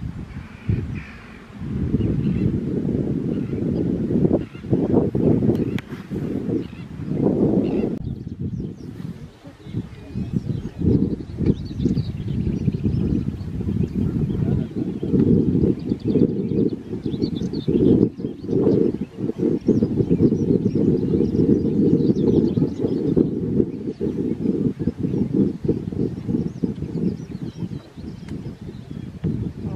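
Wind gusts roughly and steadily against the microphone outdoors.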